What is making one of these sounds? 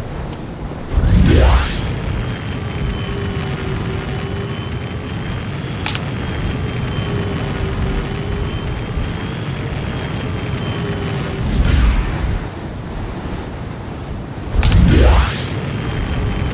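A jetpack launches with a loud rising whoosh.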